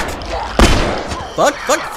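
A gunshot bangs sharply nearby.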